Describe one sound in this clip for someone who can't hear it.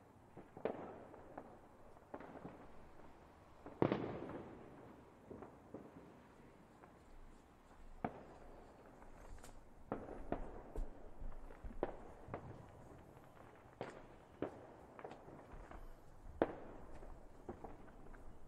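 Fireworks burst with loud booming bangs, echoing outdoors.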